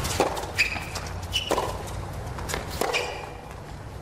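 Shoes squeak sharply on a hard court.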